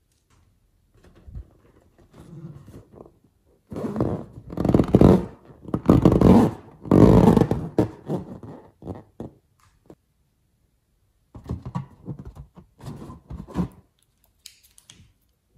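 Rubber balloons squeak and rustle as fingers rub them.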